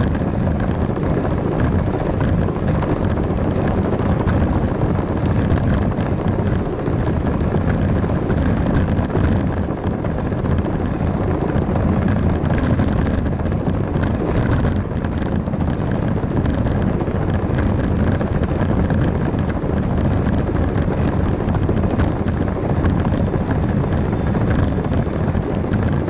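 A bicycle tyre rolls steadily over pavement.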